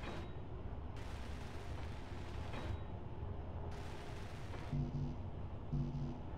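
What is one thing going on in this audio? A welding torch hisses softly in short bursts.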